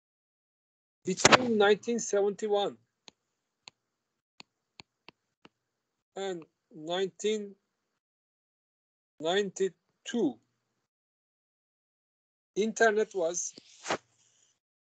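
An older man speaks calmly through an online call, in short phrases with pauses.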